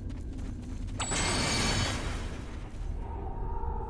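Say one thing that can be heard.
Magic spells whoosh and burst in a fight.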